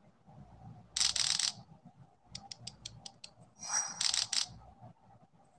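Short bright chimes ring out a few times.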